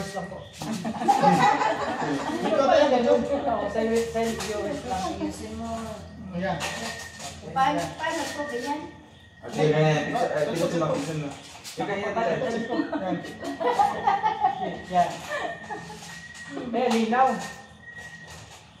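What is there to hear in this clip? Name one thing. A group of men and women talk and chatter close by.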